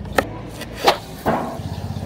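A knife chops against a wooden board.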